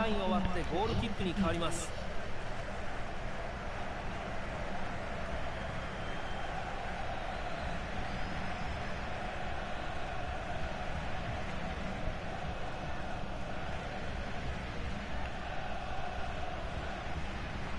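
A large stadium crowd murmurs and roars steadily.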